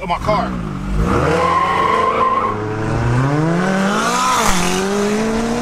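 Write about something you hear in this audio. A car engine revs loudly and rises in pitch as the car speeds up.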